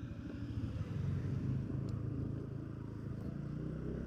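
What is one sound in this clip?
A car drives past.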